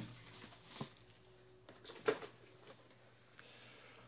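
A box lid slides off and taps down.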